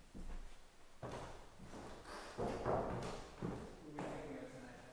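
A man speaks quietly, a short way off.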